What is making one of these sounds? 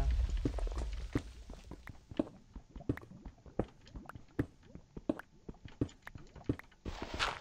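A pickaxe chips rapidly at stone with quick knocks.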